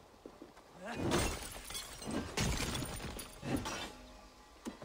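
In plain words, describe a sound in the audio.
Wooden crates smash and crash loudly, with debris clattering down.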